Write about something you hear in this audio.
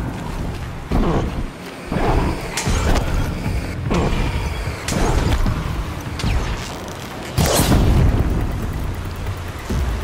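Explosions burst with loud booms.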